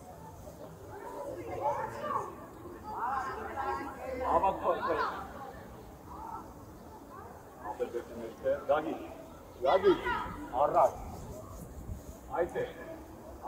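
Children shout and call out across an open outdoor pitch.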